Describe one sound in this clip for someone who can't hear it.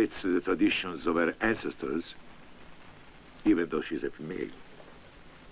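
A middle-aged man speaks calmly and smoothly, close by.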